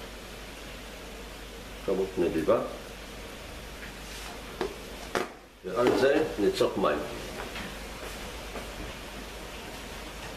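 Food sizzles and bubbles in a pan.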